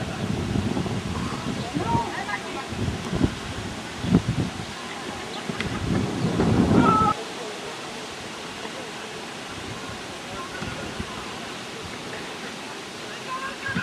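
Players shout to each other in the distance outdoors.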